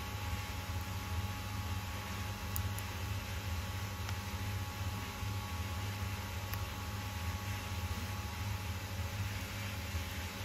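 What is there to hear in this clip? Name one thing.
A screwdriver scrapes and clicks against a metal screw.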